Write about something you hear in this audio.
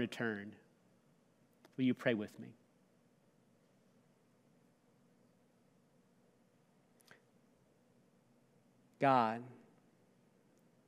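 A middle-aged man speaks calmly into a microphone in short bursts with long pauses.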